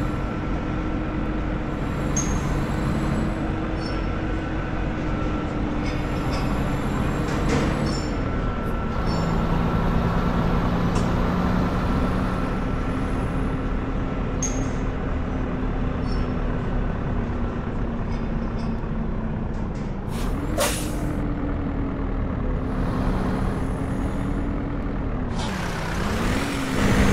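A truck engine rumbles steadily, rising and falling in pitch as it drives.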